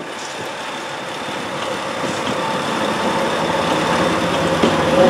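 A diesel locomotive rumbles and grows louder as it approaches.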